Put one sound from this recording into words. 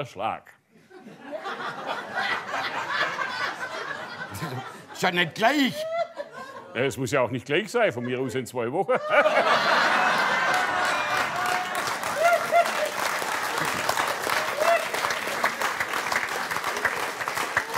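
A group of men laughs.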